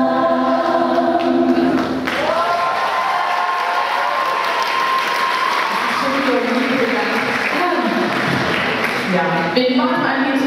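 A piano plays along with the singers.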